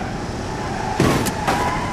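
A car crashes into another with a loud metallic bang.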